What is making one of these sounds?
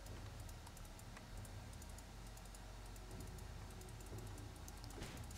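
Soft game sound effects click and tick.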